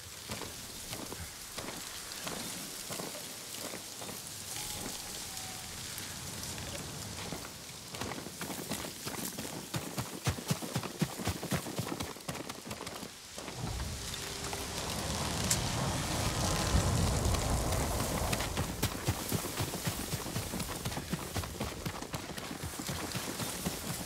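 Footsteps crunch over grass and rock at a steady walking pace.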